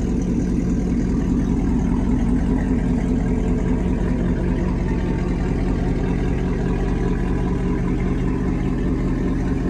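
A car engine rumbles deeply as the car rolls slowly past nearby.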